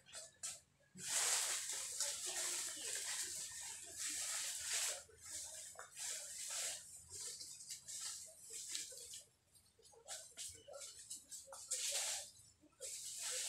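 Dry leaves rustle and crackle as a man gathers them by hand.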